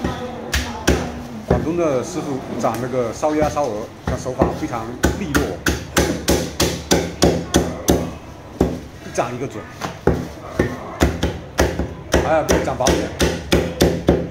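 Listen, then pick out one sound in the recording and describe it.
A cleaver chops sharply on a wooden block, again and again.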